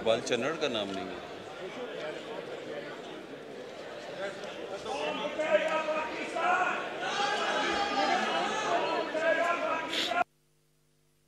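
A crowd of men talk and murmur in a large echoing hall.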